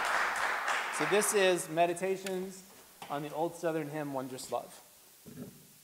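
A man speaks calmly to an audience in a large echoing hall.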